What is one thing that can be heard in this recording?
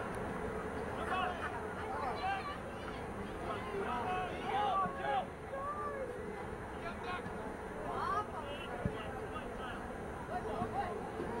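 Players and spectators shout from across an outdoor field.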